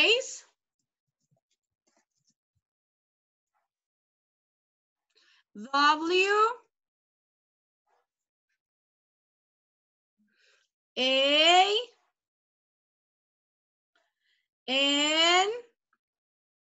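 A young woman speaks in short, rising bursts over an online call.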